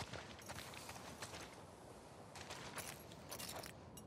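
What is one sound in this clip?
Footsteps rustle through grass outdoors.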